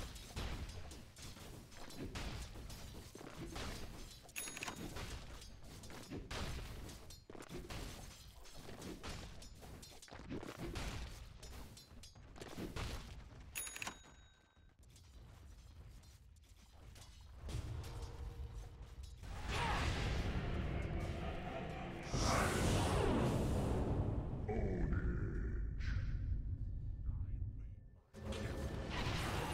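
Blades clash and magic blasts burst in a fast fight.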